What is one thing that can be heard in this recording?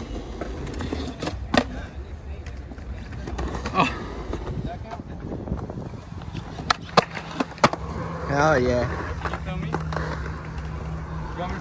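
Skateboard wheels roll and rumble on concrete.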